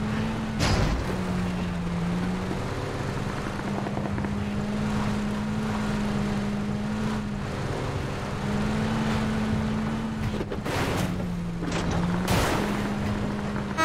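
A truck engine drones steadily, its pitch shifting as it climbs.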